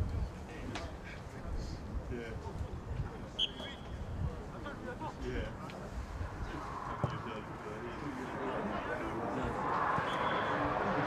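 Players call out to each other from a distance.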